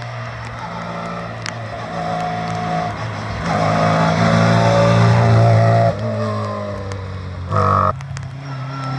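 A small rally car's engine revs hard as it climbs past and fades away.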